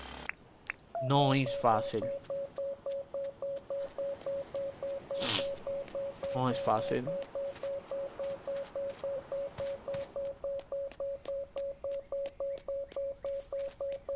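A metal detector beeps in a quick, steady rhythm.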